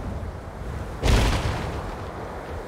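A flying creature lands with a heavy whoosh.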